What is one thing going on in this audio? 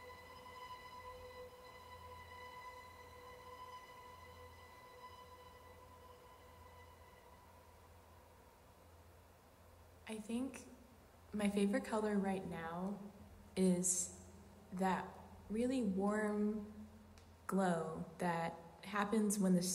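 A string quartet plays, holding a long quiet note before breaking into loud, lively phrases in a roomy space.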